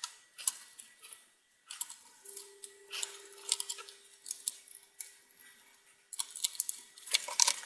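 A screwdriver clicks and scrapes against screws in a plastic casing.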